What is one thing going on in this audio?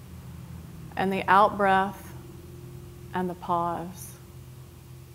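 A woman speaks calmly and softly nearby.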